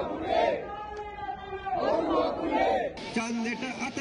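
A crowd of men and women chants loudly in unison outdoors.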